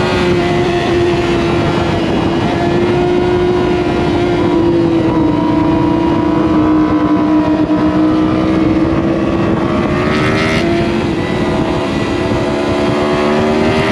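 A motorcycle engine hums steadily up close, its pitch rising and falling.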